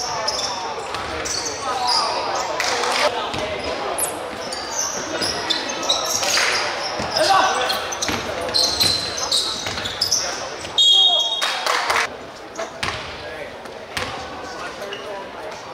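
Young players call out and shout to each other in a large echoing gym.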